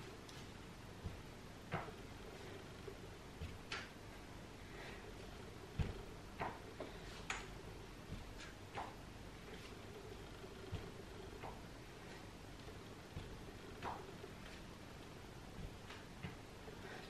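Dumbbells knock softly on a mat.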